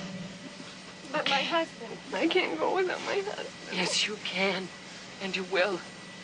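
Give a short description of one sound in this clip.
A woman speaks with agitation close by.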